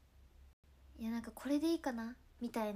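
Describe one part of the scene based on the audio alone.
A young woman speaks softly and close to a microphone.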